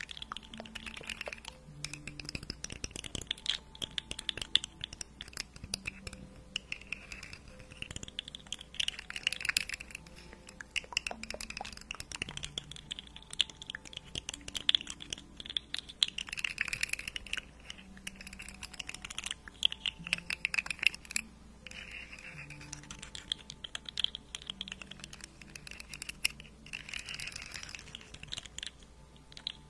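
Fingernails tap and scratch on a microphone's furry cover.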